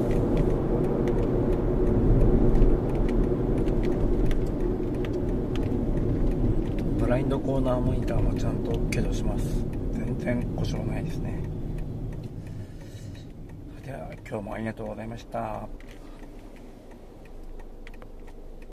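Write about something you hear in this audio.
A car engine hums steadily from inside the cabin and fades as the car slows to a stop.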